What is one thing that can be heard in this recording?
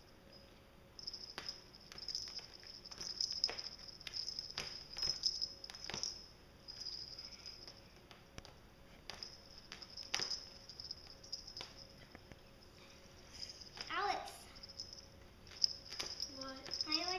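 Cats scuffle and scratch with their claws on a rough mat.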